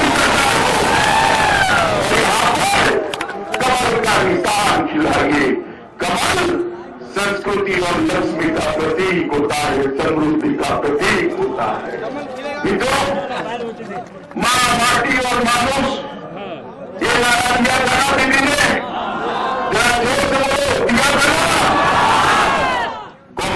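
A middle-aged man speaks forcefully into a microphone over loudspeakers, outdoors.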